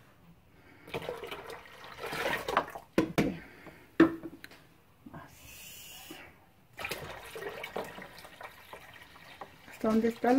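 Water pours and splashes into a plastic container.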